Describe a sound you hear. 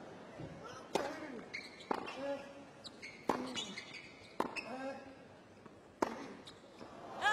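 Tennis players grunt sharply as they hit the ball.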